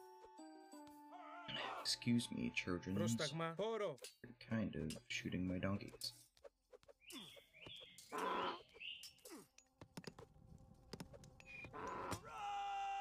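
Short game sound effects chime and click.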